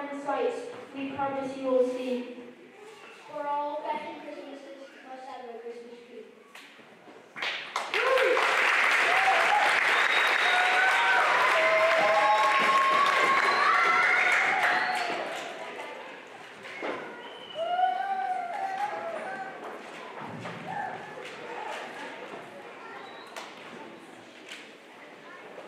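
Children talk and call out in a group.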